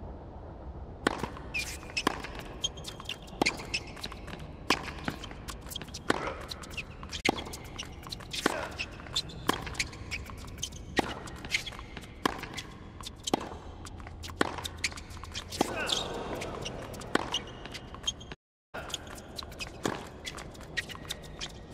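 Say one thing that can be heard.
Tennis shoes squeak on a hard court.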